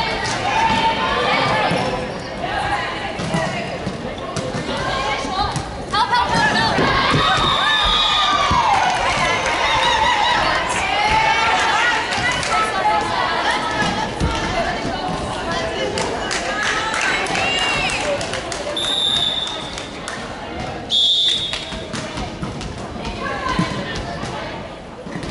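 Young women and girls call out and cheer loudly in an echoing hall.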